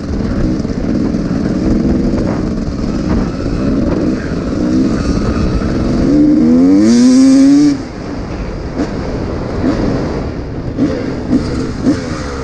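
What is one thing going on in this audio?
A dirt bike engine roars close by, revving up and down as it rides.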